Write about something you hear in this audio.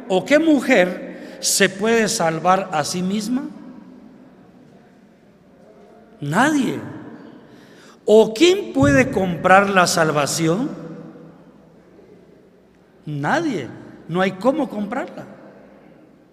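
An elderly man speaks with animation into a microphone through a loudspeaker, with pauses, in an echoing hall.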